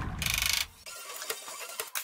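An air tool hisses and rattles.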